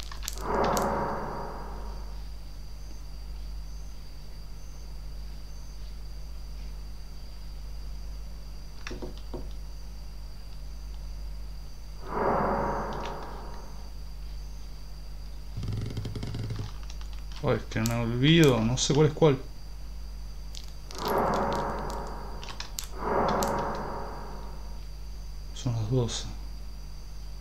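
A young man speaks quietly into a close microphone in short bursts.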